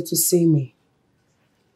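A woman speaks calmly in short phrases close to a microphone.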